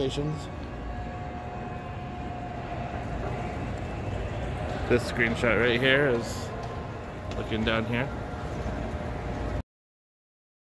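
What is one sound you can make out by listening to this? An escalator hums and rumbles steadily close by.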